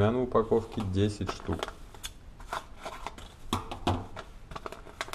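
Scissors snip through a paper packet.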